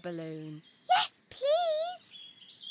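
Children answer eagerly, all together.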